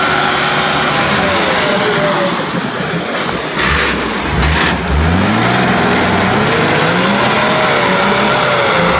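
An engine revs hard and labours.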